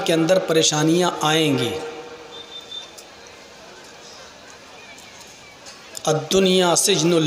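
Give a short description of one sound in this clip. A man chants in a drawn-out, melodic voice through a microphone and loudspeakers.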